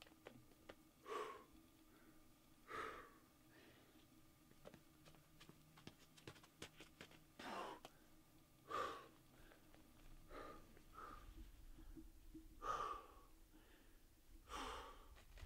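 A man grunts and breathes hard with effort.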